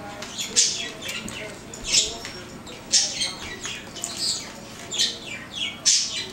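Two dogs growl and snarl playfully in short bursts.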